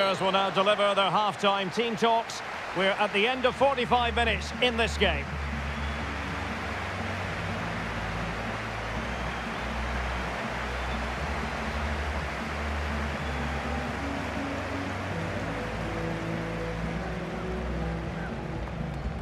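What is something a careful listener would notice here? A large stadium crowd cheers and chants steadily.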